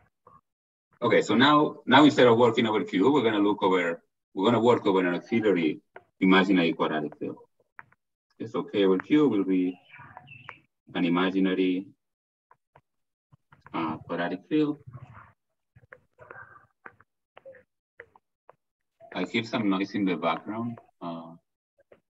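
A man speaks calmly over an online call, lecturing in bursts with pauses.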